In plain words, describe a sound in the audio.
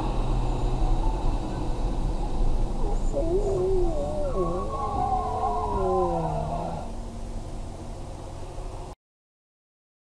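Tyres hiss on a wet road as a vehicle drives along.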